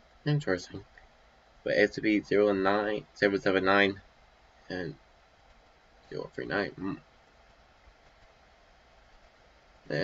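A young man talks casually and close to a microphone, in short bursts with pauses.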